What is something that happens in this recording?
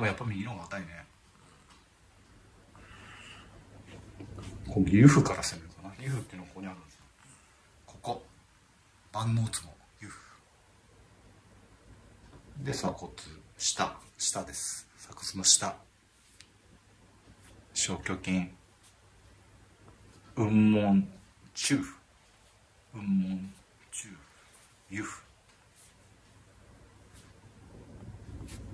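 Hands rub and press softly against cloth.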